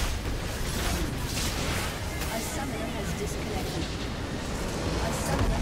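Video game spell effects whoosh and crackle amid clashing battle sounds.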